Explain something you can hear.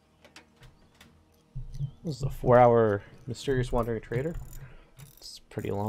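Metal tools clank and rattle against a car engine.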